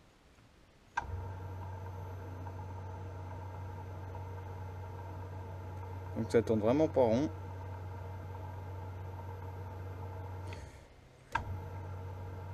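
A lathe motor hums steadily as its chuck spins.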